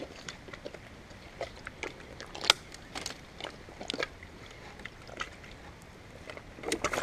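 Feet splash and wade through shallow water.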